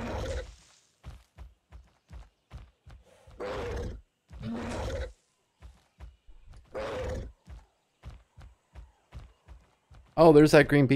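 Heavy footsteps thud quickly on grass.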